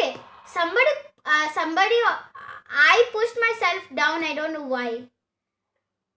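A young boy speaks with animation through a phone's loudspeaker.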